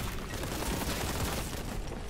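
A fiery explosion booms.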